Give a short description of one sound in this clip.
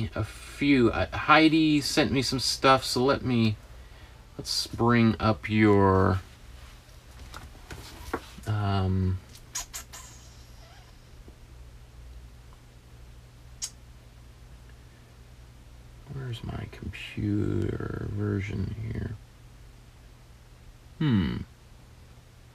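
A man talks calmly and clearly into a close microphone, in short phrases with pauses.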